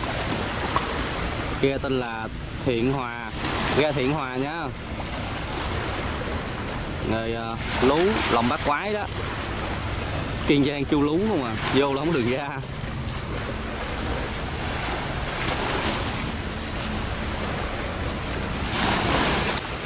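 A boat engine chugs steadily.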